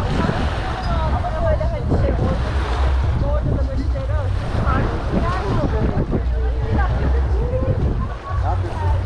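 Adults chat nearby.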